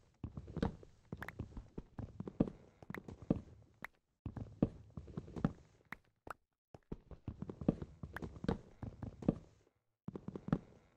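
Stone blocks crunch and crumble as they are broken with sharp, repeated digging knocks.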